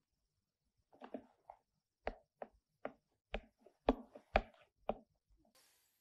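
Footsteps knock on a floor indoors.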